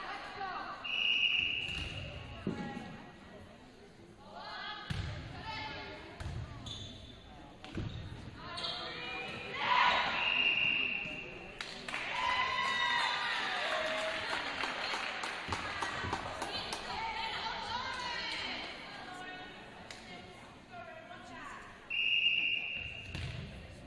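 A referee's whistle blows sharply in an echoing gym.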